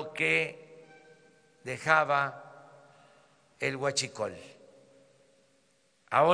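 An elderly man speaks firmly into a microphone in a large echoing hall, in short bursts.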